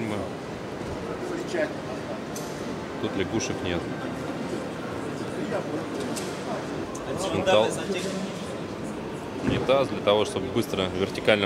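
Adult men and women chatter nearby in a busy hall.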